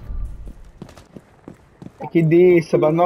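Footsteps tread on hard ground.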